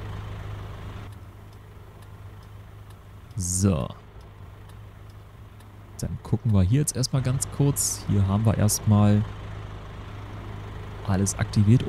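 A truck engine hums steadily at idle.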